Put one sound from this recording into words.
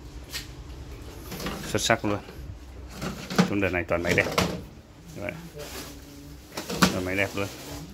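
A dish rack rattles and clatters as it slides in and out.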